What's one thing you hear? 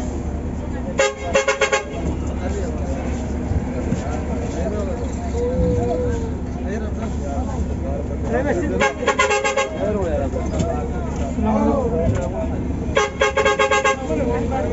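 A bus horn blares in short loud bursts.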